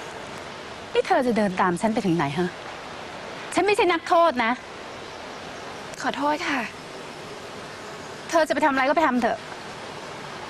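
A woman speaks sharply and angrily nearby.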